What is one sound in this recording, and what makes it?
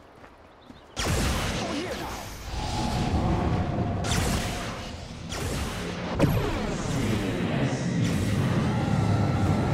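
Fantasy battle sound effects crash and whoosh.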